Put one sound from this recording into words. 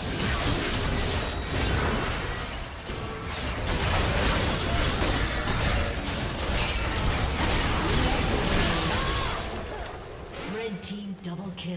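Video game characters' attacks clash with sharp hits.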